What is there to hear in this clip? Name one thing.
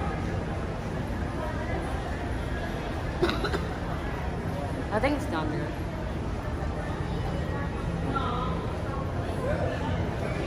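A low murmur of distant voices and hum fills a large echoing hall.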